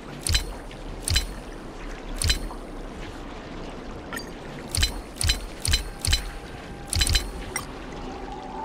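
Sharp game interface clicks sound in quick bursts as moves are entered.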